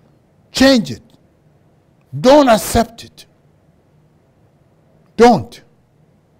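An elderly man speaks slowly and emphatically into a microphone, in short bursts with pauses.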